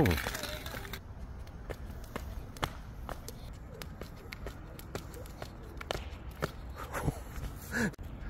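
A plastic jump rope slaps rhythmically on a hard court.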